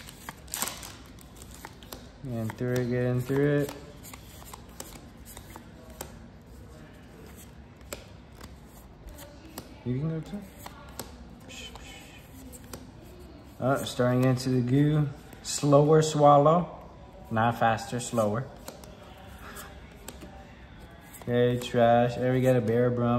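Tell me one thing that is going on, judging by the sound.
Trading cards rustle and flick softly as they are handled and sorted.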